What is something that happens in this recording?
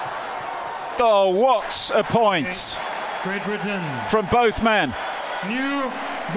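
Crowd members whistle and shout loudly.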